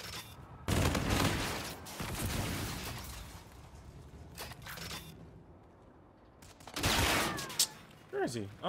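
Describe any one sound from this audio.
Gunfire blasts in loud, rapid bursts.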